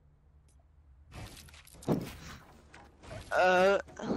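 Building pieces in a video game snap into place with short clacks.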